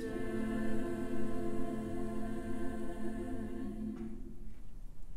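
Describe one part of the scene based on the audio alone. A choir sings a held chord that fades away.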